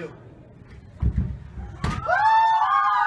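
A body thuds onto a wooden floor.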